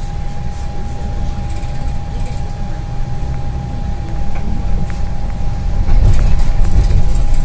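A bus engine rumbles low and steadily while driving.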